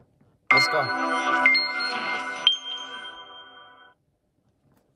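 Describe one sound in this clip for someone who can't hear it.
A short chiming game jingle rings out and fades.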